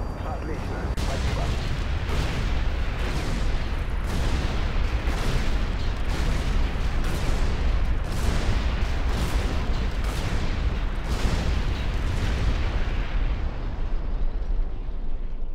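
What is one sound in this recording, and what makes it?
Heavy explosions boom again and again.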